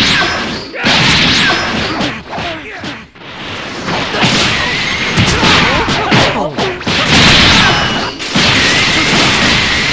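Energy blasts whoosh and explode in a video game fight.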